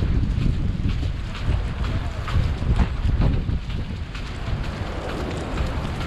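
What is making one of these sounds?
City traffic hums.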